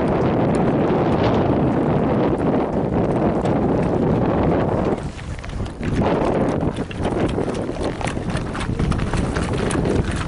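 Horse hooves splash through shallow water.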